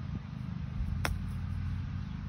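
A golf club strikes a golf ball with a sharp click.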